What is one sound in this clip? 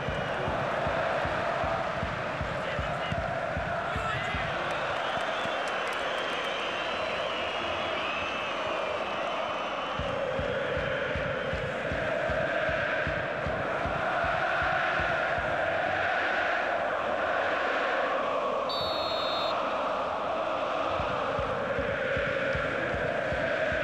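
A large crowd chants and sings loudly throughout.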